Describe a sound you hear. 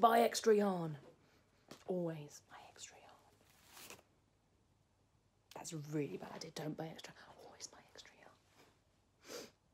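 A woman talks casually and close by.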